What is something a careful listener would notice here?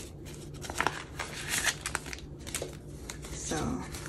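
Paper bills rustle as they are counted by hand.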